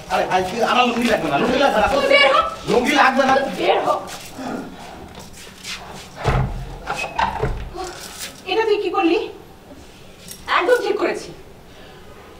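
A woman shouts angrily close by.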